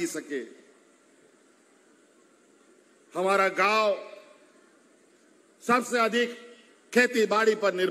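A middle-aged man speaks forcefully into a microphone over a loudspeaker, with pauses between phrases.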